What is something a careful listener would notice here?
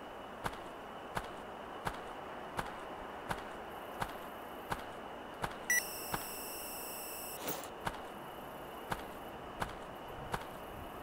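Footsteps thud steadily on soft ground.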